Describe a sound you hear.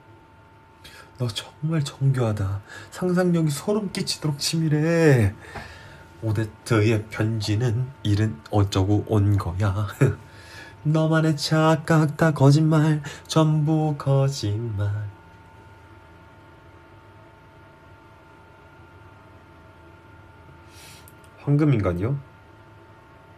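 A young man talks with animation close to a phone microphone.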